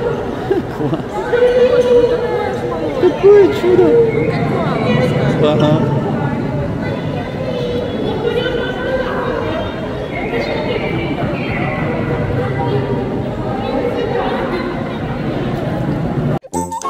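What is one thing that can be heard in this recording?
Water splashes and laps.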